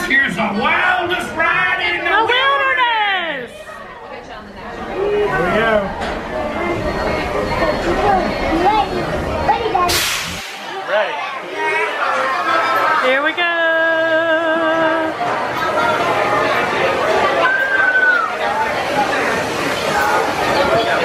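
A crowd of people chatters nearby in an echoing space.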